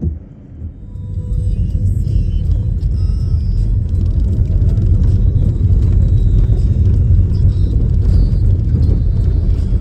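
A vehicle rumbles along a bumpy dirt road.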